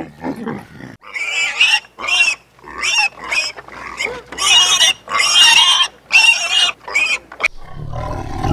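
Pigs squeal and grunt loudly.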